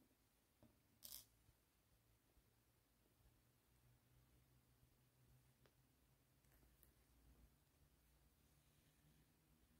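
Thread rustles softly as it is pulled through yarn.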